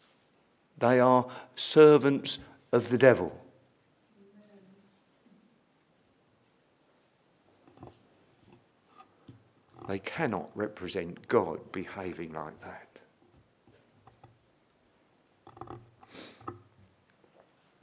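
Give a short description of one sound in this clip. An elderly man speaks calmly through a microphone, with pauses.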